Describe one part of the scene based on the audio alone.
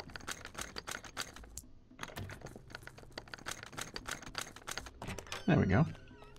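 A lock clicks and rattles as it is picked.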